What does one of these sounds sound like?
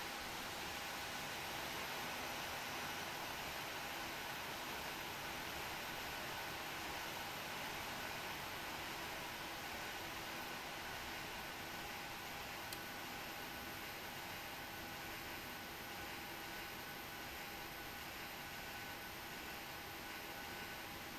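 Jet engines whine and roar steadily at idle.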